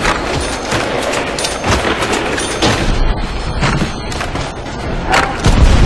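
A rifle fires repeated loud shots.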